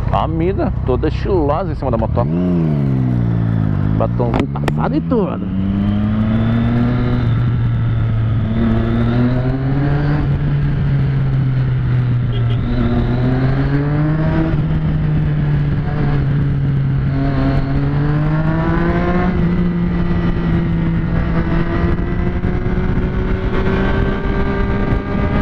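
A motorcycle engine revs up and down, rising and falling in pitch as it accelerates.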